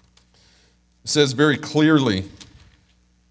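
A man sings a short phrase through a microphone.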